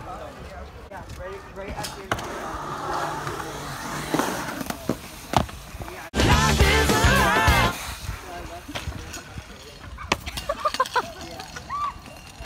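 Scooter wheels roll and clatter on concrete.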